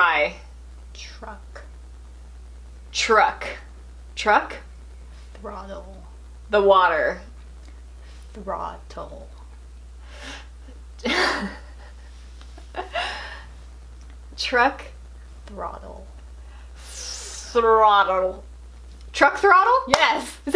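A second young woman answers calmly close by.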